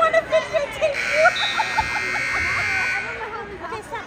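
A buzzer sounds loudly and steadily.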